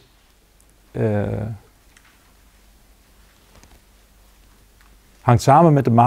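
An elderly man speaks calmly and slowly, with long pauses.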